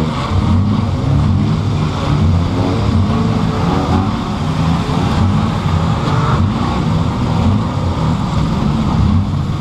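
A car engine roars loudly close by, its pitch rising and falling.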